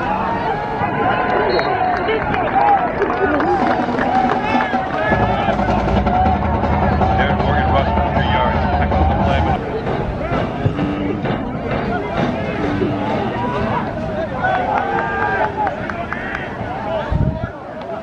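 Many people talk and shout at once outdoors, from close by and far off.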